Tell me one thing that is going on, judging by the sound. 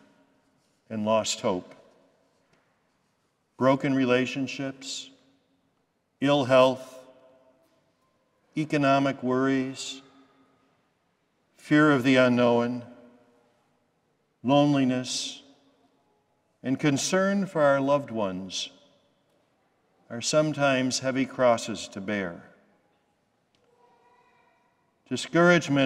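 An elderly man speaks slowly and solemnly into a microphone, in phrases separated by pauses, heard in a large echoing hall.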